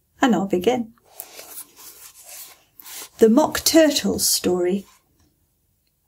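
A woman reads aloud calmly, close by.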